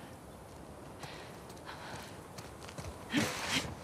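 Footsteps scuff and shuffle over stone and grass.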